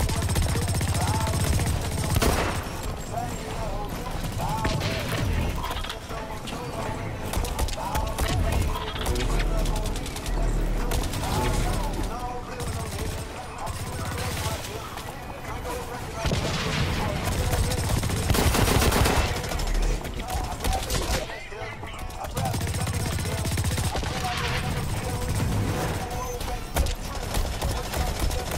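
Guns fire in rapid bursts, with loud blasts.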